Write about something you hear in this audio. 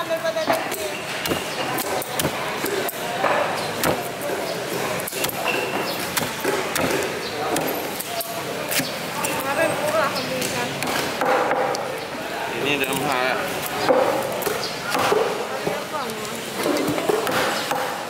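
A knife blade knocks against a wooden chopping block.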